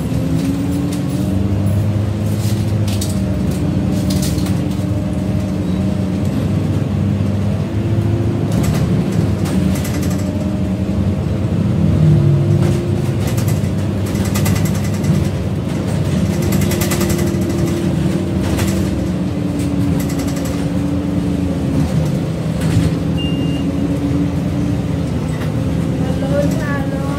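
Loose fittings rattle as the bus rolls over the road.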